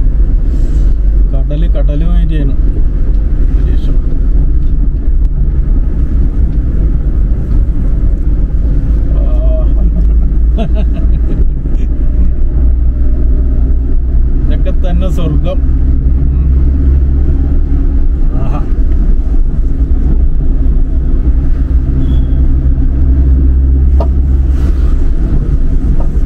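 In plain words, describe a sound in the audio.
Tyres roll on a wet road.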